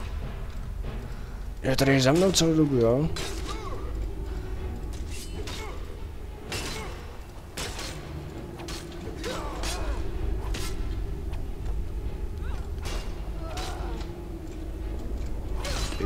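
Swords clash and strike in a fight.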